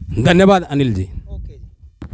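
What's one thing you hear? A man speaks into a microphone up close.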